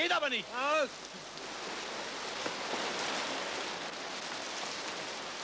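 Heavy rain pours steadily outside.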